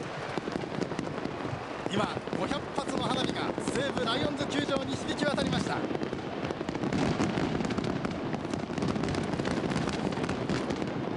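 A large crowd cheers and chatters in an open-air stadium.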